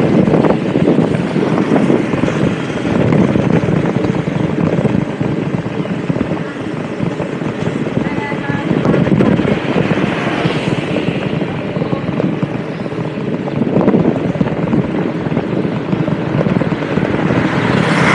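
Wind rushes past in a steady roar.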